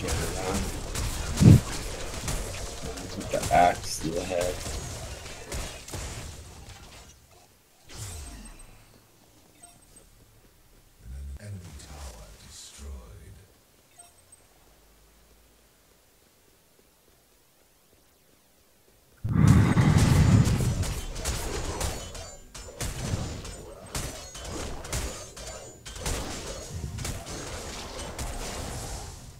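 Magic blasts and weapon strikes crackle and boom in a fast video game battle.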